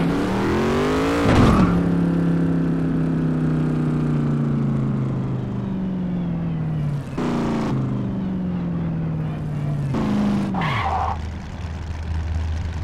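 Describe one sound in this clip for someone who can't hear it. A vehicle engine revs up and winds down as it drives and shifts gears.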